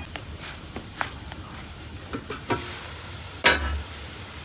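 A metal pot clanks as it is handled.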